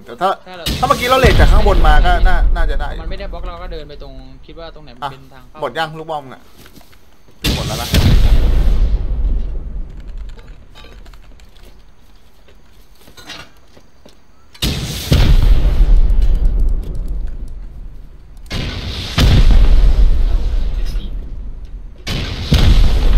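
A rocket launcher fires with a loud whoosh.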